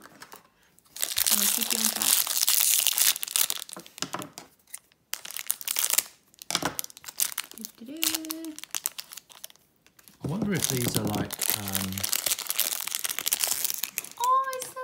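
A plastic wrapper crinkles and rustles loudly between fingers.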